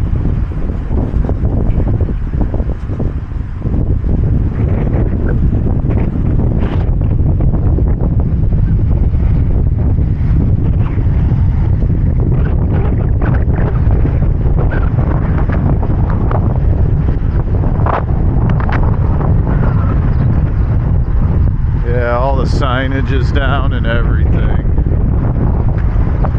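Wind blows hard outdoors, rumbling steadily against the microphone.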